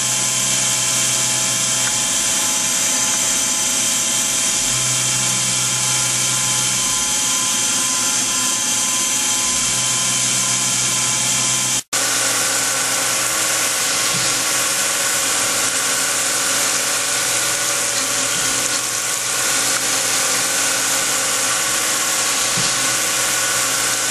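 A milling machine's cutter whines steadily.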